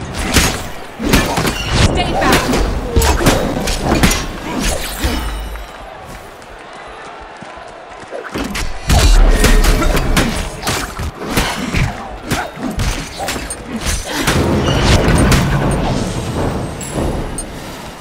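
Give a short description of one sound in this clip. Weapons clash and magic blasts burst in a fast fight.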